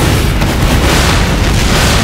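Gunfire cracks nearby in a video game.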